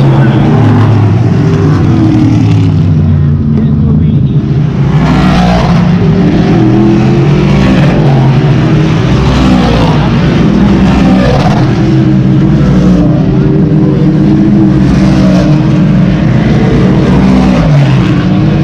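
Engines rev and whine up and down as cars pass close by.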